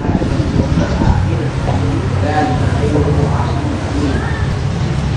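A young man speaks calmly through a microphone and loudspeaker.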